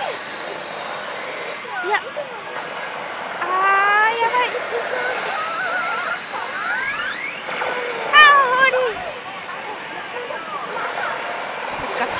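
A slot machine plays electronic music and sound effects.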